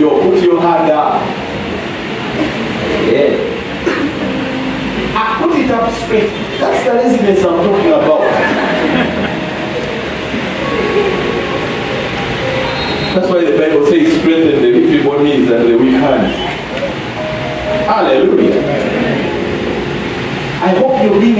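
A middle-aged man preaches with animation through a microphone in a large echoing hall.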